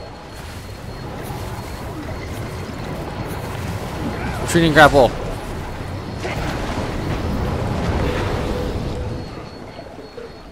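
Muffled underwater rumbling and splashing of a fight goes on, then fades.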